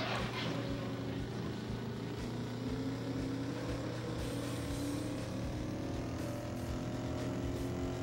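Tyres rumble over a rough dirt track.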